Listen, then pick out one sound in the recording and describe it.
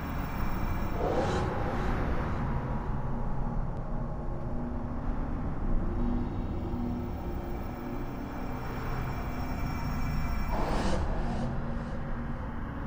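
A magical whoosh rushes past and fades.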